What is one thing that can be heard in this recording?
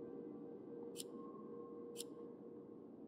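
Menu clicks sound softly, twice.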